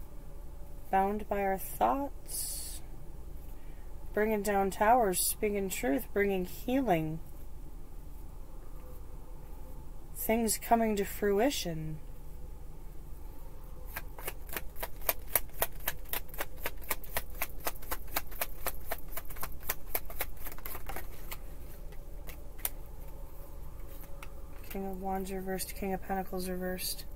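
A woman speaks calmly and close to the microphone.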